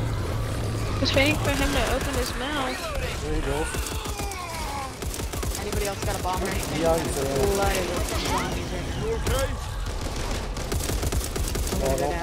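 An automatic rifle fires in rapid bursts, close by.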